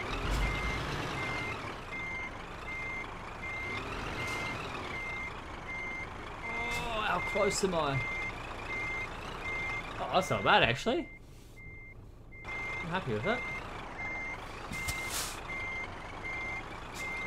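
A diesel semi-truck's engine rumbles as it reverses.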